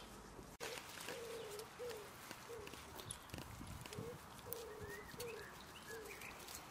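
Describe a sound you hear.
A man chuckles softly up close.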